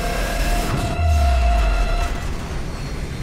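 A heavy explosion booms with a deep rumble.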